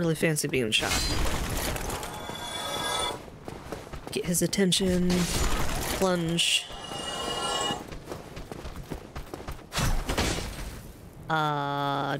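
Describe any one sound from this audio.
Swords clash and strike with sharp metallic hits.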